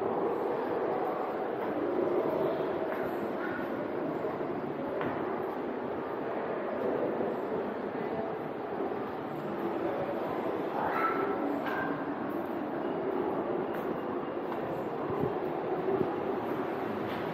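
Footsteps thud on wooden stairs in a large echoing cave.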